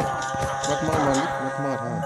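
A sword strikes a creature with a dull thud.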